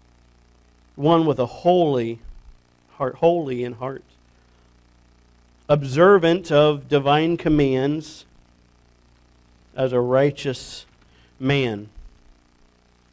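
A man speaks slowly and deliberately through a microphone, in pauses, in an echoing hall.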